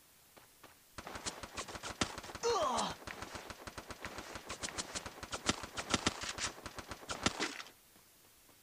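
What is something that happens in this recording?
A game character shuffles quickly through grass in short bursts of steps.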